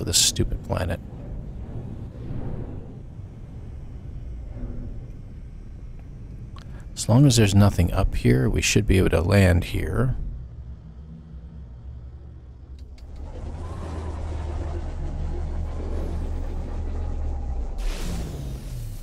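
A spacecraft engine hums low and steadily.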